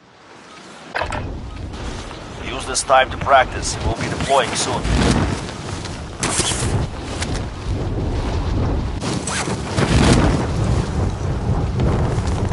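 Wind rushes loudly past a skydiver falling through the air.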